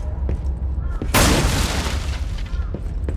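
Wooden furniture smashes and splinters apart.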